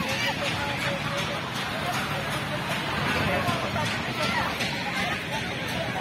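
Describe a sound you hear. Fairground music plays over loudspeakers.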